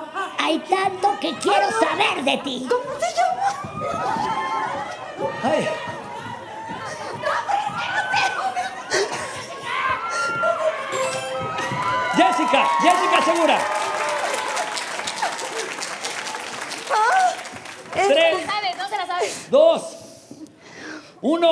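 Young women shout and laugh excitedly close by.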